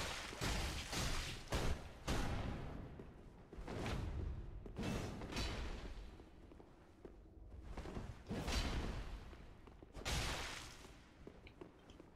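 Heavy weapons clash and thud in a fight.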